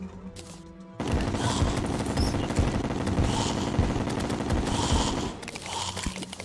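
Game combat sounds crackle and blast loudly.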